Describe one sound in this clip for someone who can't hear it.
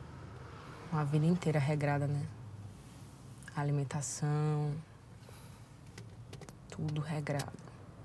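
A young woman speaks nearby in short bursts.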